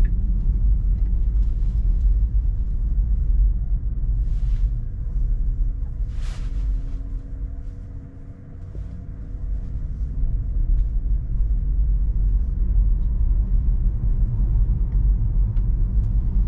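A car rumbles low and steady on the road from inside the cabin, quieting briefly as it slows and then picking up again.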